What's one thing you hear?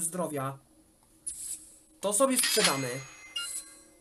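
A game menu plays a short chime as an item is sold.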